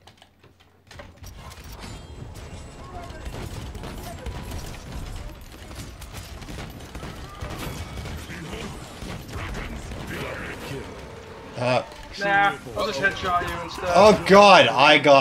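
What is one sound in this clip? A gun fires in rapid bursts with explosive blasts.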